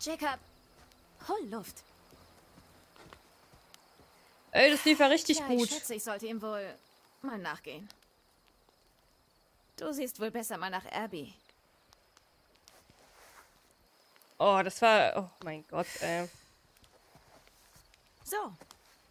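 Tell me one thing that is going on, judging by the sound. A young woman talks close into a microphone.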